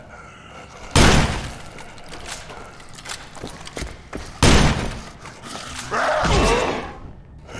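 A rifle fires loud shots that echo briefly.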